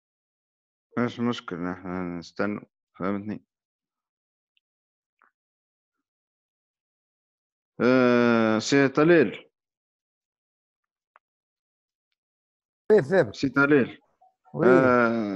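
A man talks over an online call, in short bursts with long pauses.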